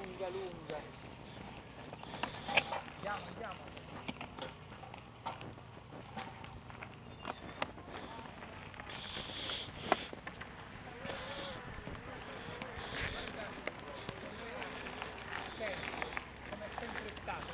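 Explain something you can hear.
Bicycle tyres roll and crunch over a dirt track.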